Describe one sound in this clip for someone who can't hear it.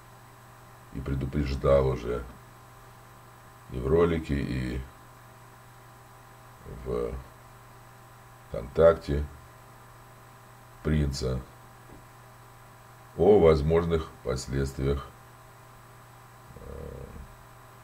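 An elderly man speaks calmly and close up, in short phrases with pauses.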